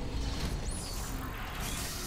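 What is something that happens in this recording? Small explosions pop and crackle in a video game.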